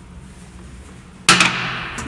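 A toilet seat clacks down.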